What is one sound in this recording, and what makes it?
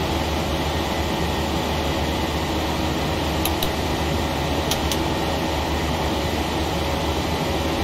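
Jet engines hum steadily in a cockpit.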